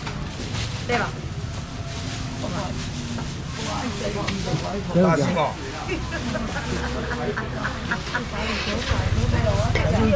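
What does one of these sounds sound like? A woman talks nearby.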